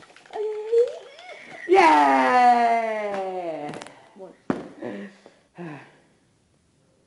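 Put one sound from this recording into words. A boy laughs close by.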